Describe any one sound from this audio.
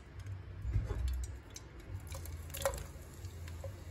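Onion rings drop into a hot pan with a splash.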